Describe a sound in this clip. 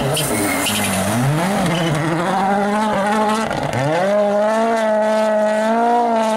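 Gravel sprays and crunches under a rally car's tyres.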